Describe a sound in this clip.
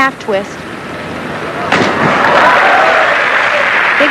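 A diver splashes into water.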